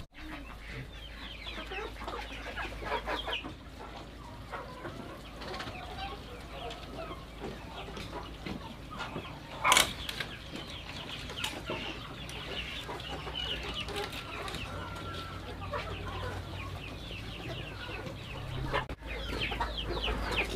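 Chickens cluck and chirp nearby.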